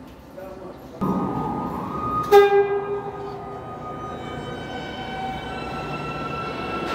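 A subway train's electric motors whine steadily as it rolls in.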